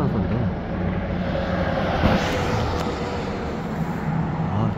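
A small truck drives past on the road.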